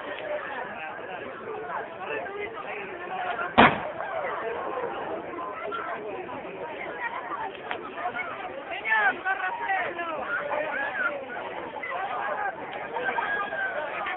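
A crowd of men and women talk and call out nearby, outdoors.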